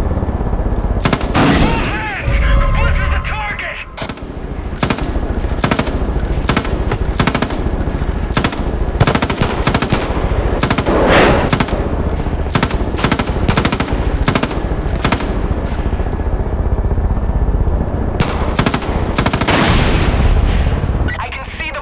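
A machine gun fires in sharp bursts of shots.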